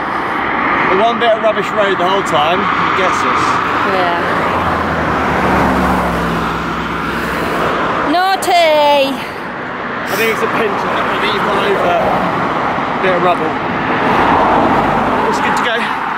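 A man talks calmly and close by, outdoors in wind.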